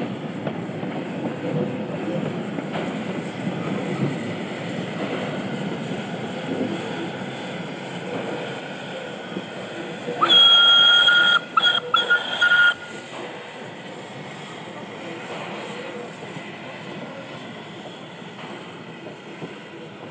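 A small steam locomotive chuffs steadily as it rolls past and moves away.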